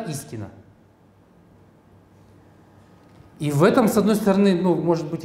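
A man speaks through a microphone, pausing between phrases.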